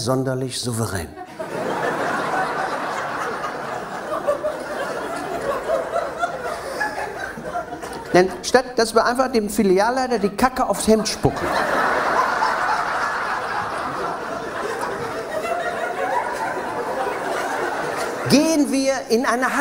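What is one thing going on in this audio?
A middle-aged man talks with animation through a microphone.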